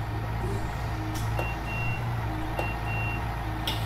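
Bus doors hiss and swing open.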